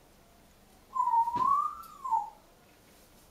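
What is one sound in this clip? A parrot whistles a rising and falling tone close by.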